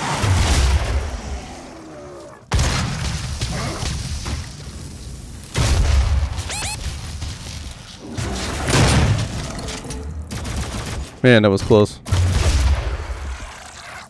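A shotgun fires with loud booming blasts.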